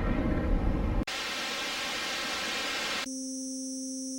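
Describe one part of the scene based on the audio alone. Television static hisses loudly.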